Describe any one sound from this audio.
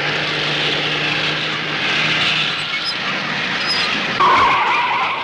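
A car engine hums.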